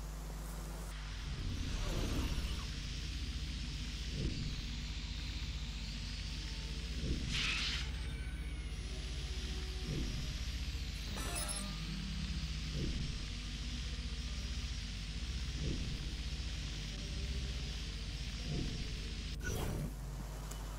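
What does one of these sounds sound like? A small drone buzzes steadily.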